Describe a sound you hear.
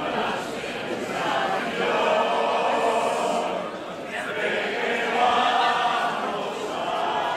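A crowd of performers sings together loudly.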